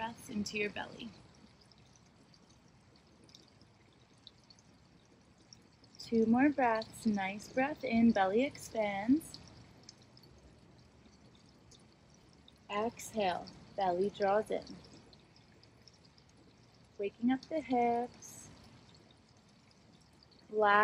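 A young woman speaks calmly and softly close by, in short phrases with pauses.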